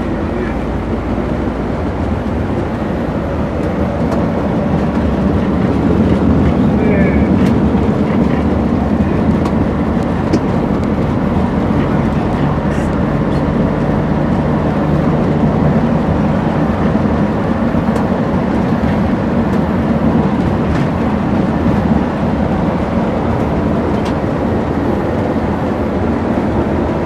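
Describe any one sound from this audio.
Tyres roar on the road at speed.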